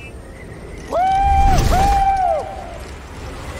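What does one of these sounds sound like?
A young man whoops with joy.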